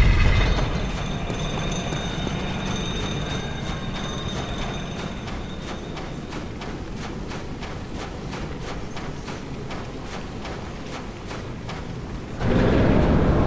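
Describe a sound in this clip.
Many small creatures skitter and click in a swarm.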